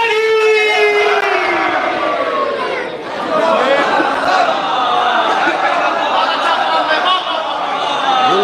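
A crowd cheers and calls out in praise.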